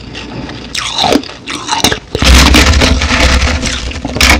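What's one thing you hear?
Fingers scrape and crush shaved ice close to a microphone.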